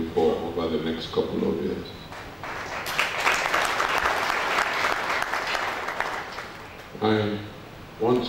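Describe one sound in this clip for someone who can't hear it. A man speaks calmly into a microphone through a loudspeaker.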